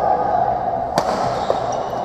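A badminton racket strikes a shuttlecock.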